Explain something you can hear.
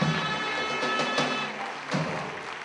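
Reed pipes play a loud, shrill tune.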